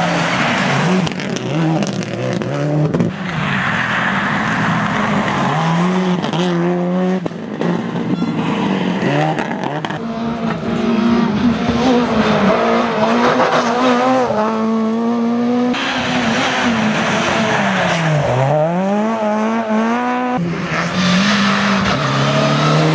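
A rally car engine roars loudly, revving up and down as the car speeds past.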